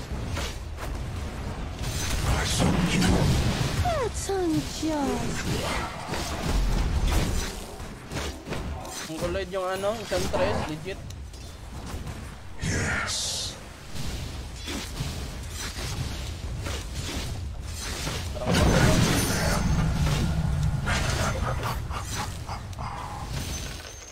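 Spell blasts and weapon clashes ring out in a fast-paced game battle.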